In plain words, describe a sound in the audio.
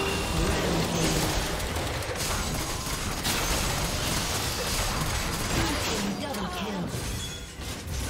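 A game announcer calls out a kill.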